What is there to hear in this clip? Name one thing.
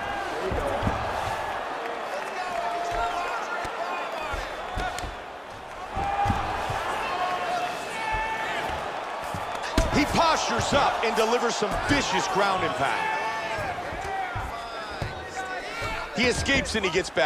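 Punches thud heavily against a body in quick bursts.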